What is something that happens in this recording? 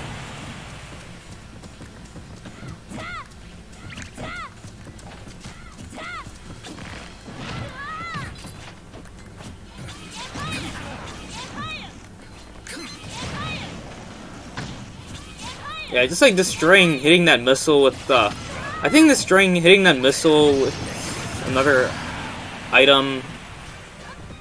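Cartoonish punches, whooshes and zaps sound in quick bursts.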